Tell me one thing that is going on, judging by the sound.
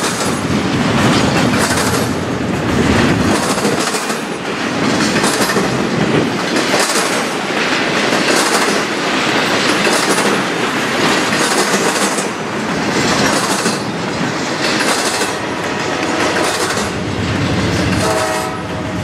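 A freight train rumbles past close by, its wheels clattering in a steady rhythm over the rail joints.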